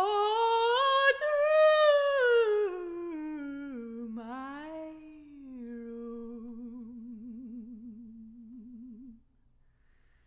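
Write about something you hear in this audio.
A woman sings close by, gliding slowly down in pitch with a wide vibrato.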